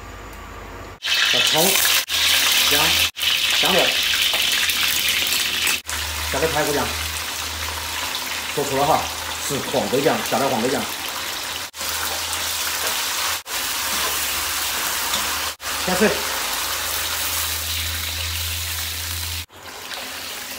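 Hot oil sizzles and crackles loudly in a wok.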